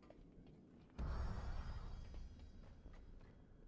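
A loud magical whoosh bursts out and slowly fades.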